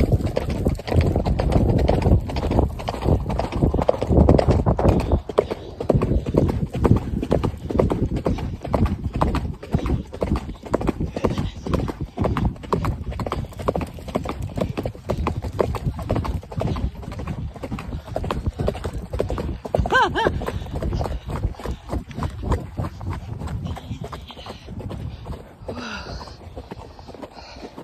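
A horse's hooves thud steadily on a dirt trail.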